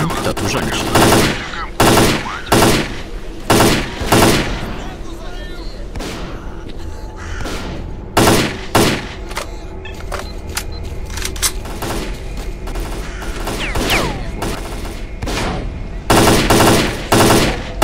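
Rifle shots ring out in loud bursts and echo.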